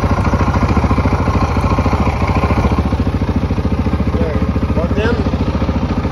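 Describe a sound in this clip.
A motorcycle engine idles close by with a fast, steady chugging.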